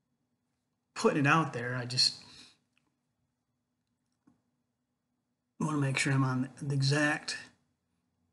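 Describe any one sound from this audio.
An older man speaks calmly and closely into a microphone, heard as though over an online call.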